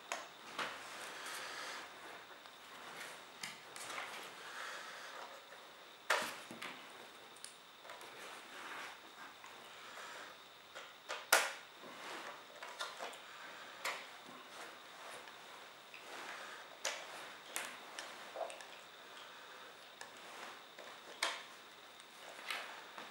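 Small plastic connectors click as they are plugged in and pulled out.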